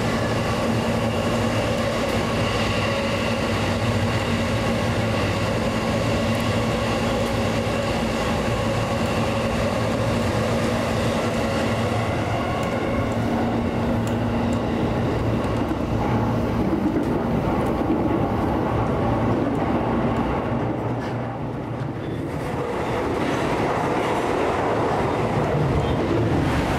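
A train rumbles along the rails, echoing loudly inside a tunnel.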